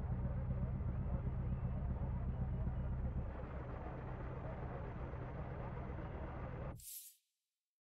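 A rally car engine idles with a low, steady rumble, then cuts off abruptly.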